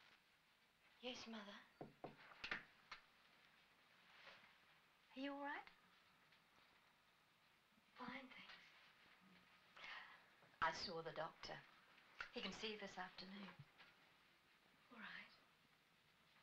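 A woman speaks calmly nearby, in short phrases.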